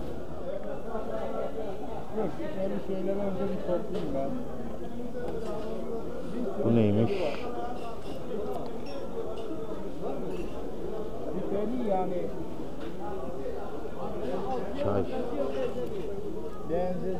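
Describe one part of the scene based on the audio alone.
Many people chatter in a busy crowd around the listener.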